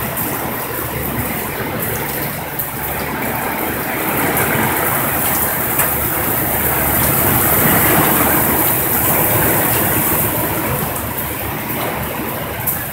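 Heavy rain pours down steadily on a road outdoors.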